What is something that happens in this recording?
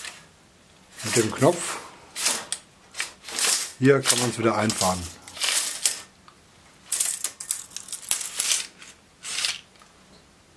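A tape measure blade rattles and scrapes as it is pulled out and slides back.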